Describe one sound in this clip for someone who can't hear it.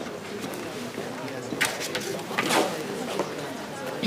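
Paper rustles in a hand.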